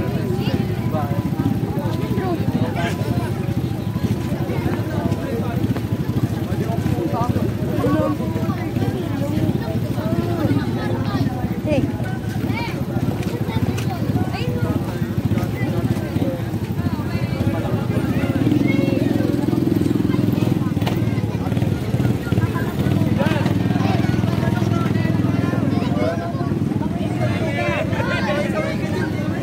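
A crowd of young people chatters and calls out nearby, outdoors.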